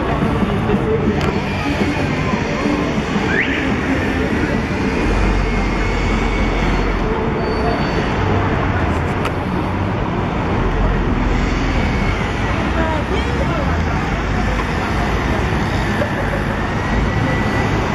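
A crowd of passers-by murmurs in the background.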